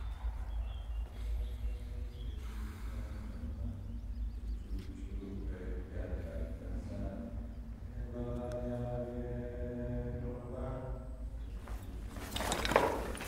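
An elderly man sobs and moans softly nearby.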